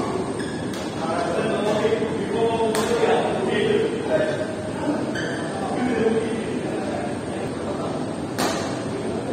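Badminton rackets strike a shuttlecock with sharp pops.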